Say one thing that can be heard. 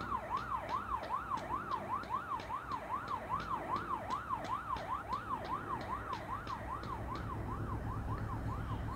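Quick footsteps thud on pavement.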